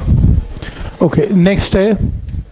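A man speaks into a microphone, close by.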